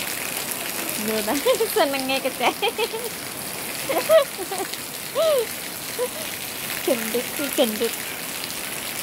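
A young boy calls out nearby.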